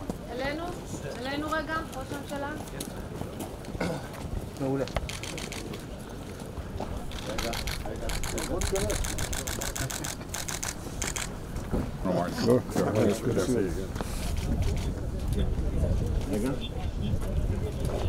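Elderly men talk calmly outdoors.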